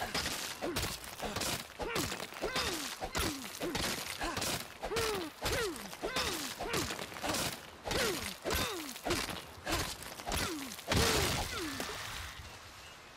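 A pickaxe strikes rock again and again with ringing knocks.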